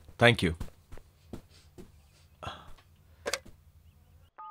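Footsteps and soft thumps sound as men sit down on a sofa.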